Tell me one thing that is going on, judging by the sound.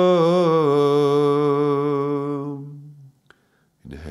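A man chants a long, steady, wavering note up close, which then fades.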